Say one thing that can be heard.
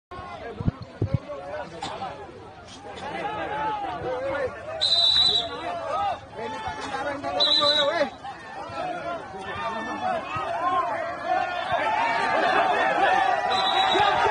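A large crowd of men talks and shouts outdoors.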